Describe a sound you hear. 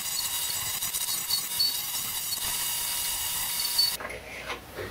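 A lathe chisel scrapes loudly against spinning wood.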